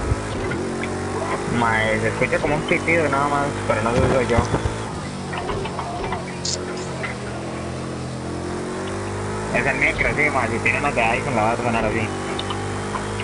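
A racing car engine roars steadily, rising and falling in pitch with gear changes.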